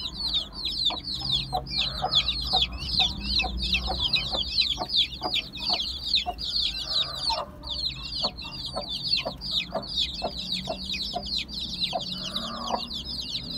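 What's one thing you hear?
Many chicks cheep loudly and constantly, close by.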